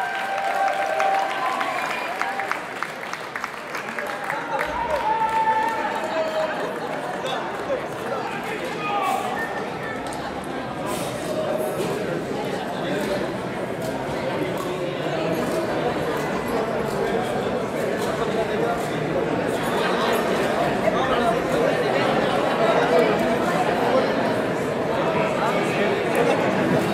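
A rock band plays loudly in a large echoing hall.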